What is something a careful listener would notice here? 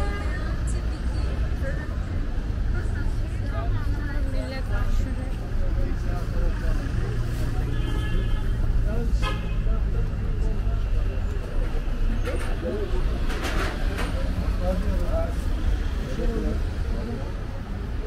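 Voices of men and women chatter nearby in a busy outdoor market.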